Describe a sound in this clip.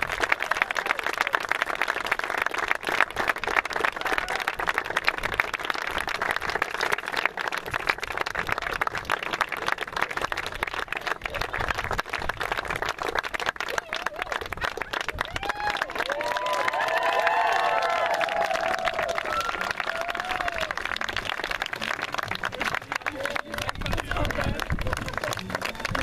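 A crowd claps and cheers outdoors.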